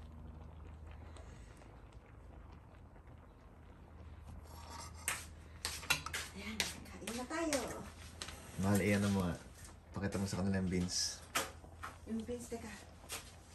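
Spinach simmers softly in a pan.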